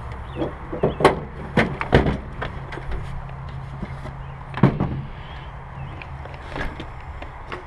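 A plastic bucket knocks and scrapes on a truck bed liner.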